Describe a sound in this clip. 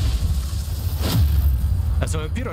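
A loud blast booms and crackles.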